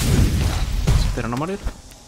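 A sword slashes against a stone pillar with a sharp hit.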